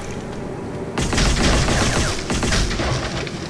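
A magic bolt crackles and whooshes through the air.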